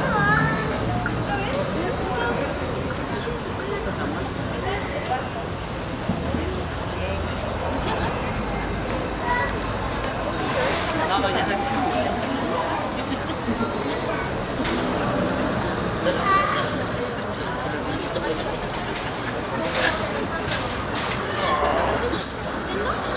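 A crowd of men and women chatter and murmur outdoors.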